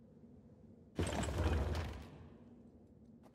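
A heavy stone mechanism turns with a loud grinding rumble.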